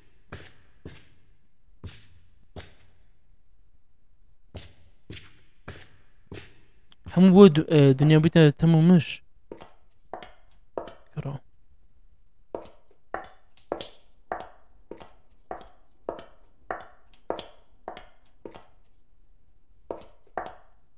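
Footsteps echo steadily on a hard floor.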